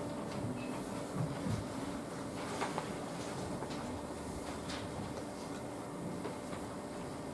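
An elderly woman speaks quietly nearby.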